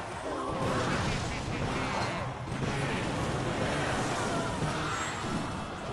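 Cartoon battle sound effects clash and thud.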